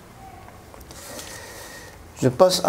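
Paper rustles as a sheet is moved.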